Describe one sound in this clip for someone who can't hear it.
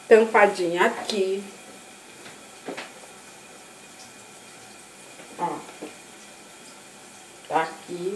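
A middle-aged woman talks close by in a small echoing room.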